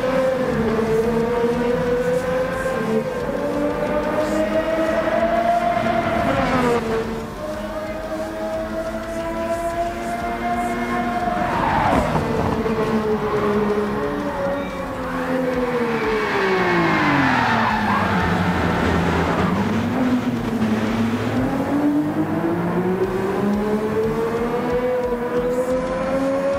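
A racing car engine whines loudly, rising and falling in pitch as it speeds up and shifts gears.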